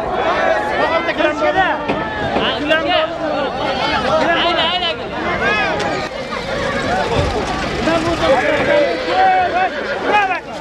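A crowd of men shouts and chatters loudly outdoors.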